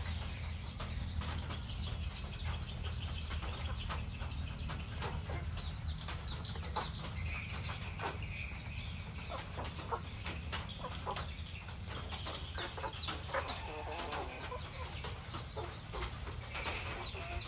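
Chickens peck and scratch at the ground.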